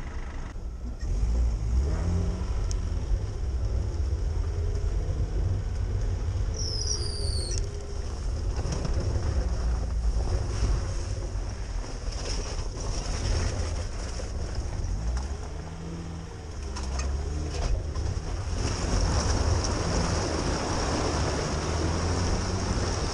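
The car body creaks and rattles over bumps.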